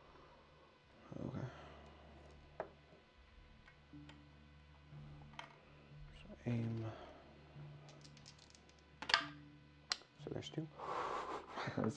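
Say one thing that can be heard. Playing cards slide and tap on a tabletop.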